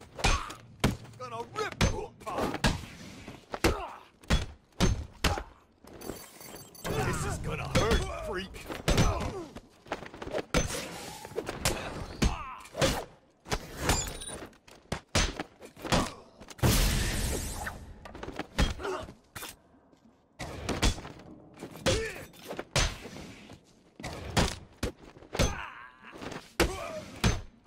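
Punches and kicks thud hard again and again in a brawl.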